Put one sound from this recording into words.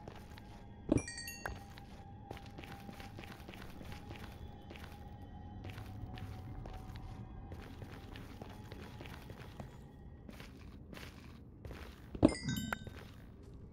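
An item pops up with a bright chime.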